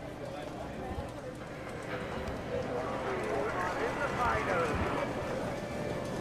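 Slot machines chime and jingle all around.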